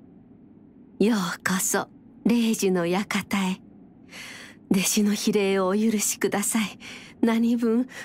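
An elderly woman speaks calmly and warmly.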